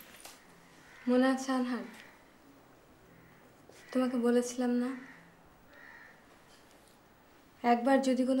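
A middle-aged woman speaks firmly nearby.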